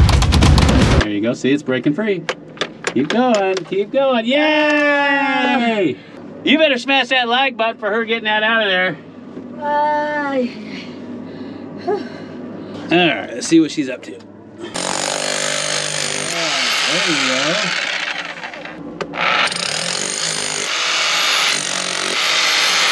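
A rotary hammer drill pounds into rock.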